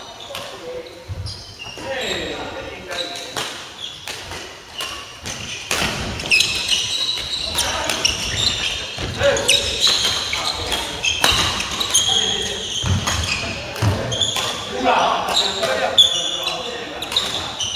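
Badminton rackets hit a shuttlecock with sharp pops.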